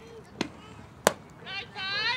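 A bat strikes a softball with a sharp crack.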